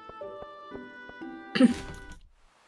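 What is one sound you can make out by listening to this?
Bright electronic game music plays in short chiming notes.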